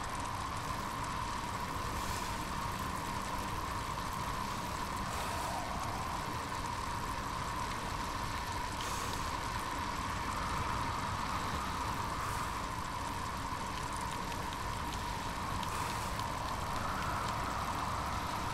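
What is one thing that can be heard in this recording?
Bicycle wheels whir steadily on a smooth road.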